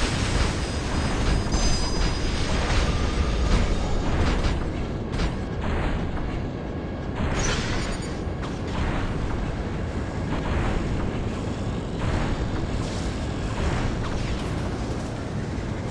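Heavy metal footsteps thud steadily as a giant robot walks.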